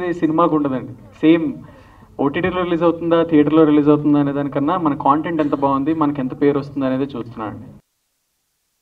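A young man speaks calmly into a microphone over loudspeakers.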